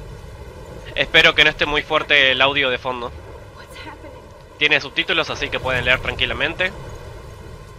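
A young man talks animatedly, close to a microphone.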